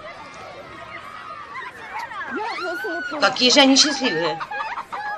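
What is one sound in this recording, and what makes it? A young woman calls out cheerfully.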